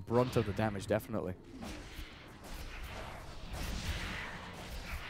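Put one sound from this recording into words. Fighting sounds from a video game clash and whoosh with magic effects.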